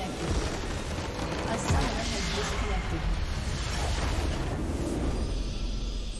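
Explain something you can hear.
A magical blast crashes and rumbles as a large structure is destroyed.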